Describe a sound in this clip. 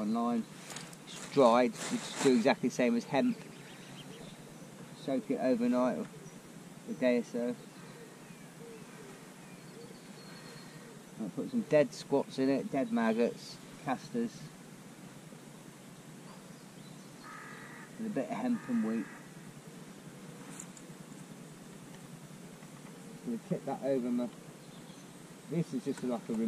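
A middle-aged man talks calmly close by, in bursts with pauses.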